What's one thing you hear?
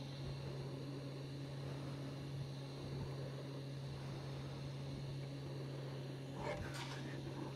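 Metal parts click and clink as hands adjust a lathe chuck.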